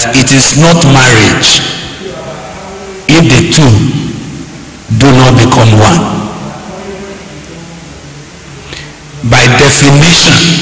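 A man speaks emphatically into a microphone in short bursts with pauses.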